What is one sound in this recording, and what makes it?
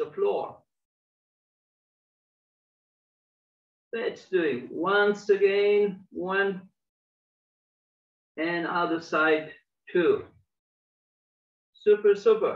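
A man speaks calmly in short phrases over an online call, with pauses in between.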